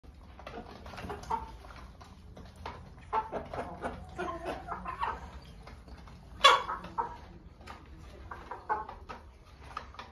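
Chickens cluck and croak close by.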